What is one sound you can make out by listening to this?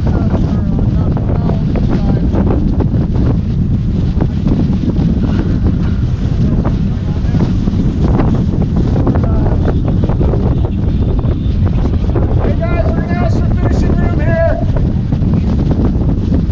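Water rushes and splashes along a sailboat's hull.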